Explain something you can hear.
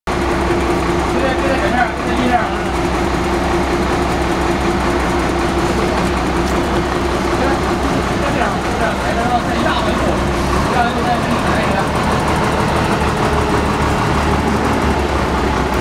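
A truck engine idles nearby with a steady low rumble.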